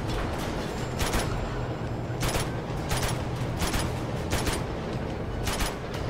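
Rifle shots ring out one at a time at an uneven pace.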